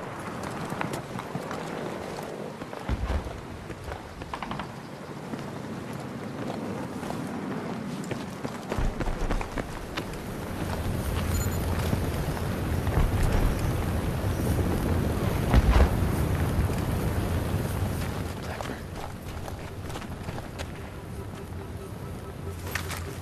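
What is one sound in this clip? Gunfire and explosions crack and boom across a battlefield.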